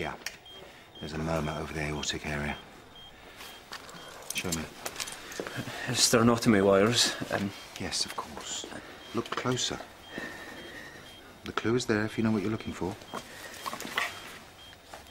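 A middle-aged man speaks calmly and quietly nearby.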